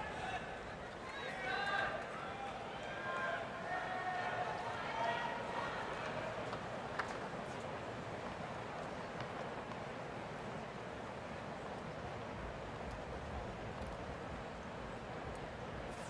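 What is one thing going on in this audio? A crowd murmurs quietly in a large open stadium.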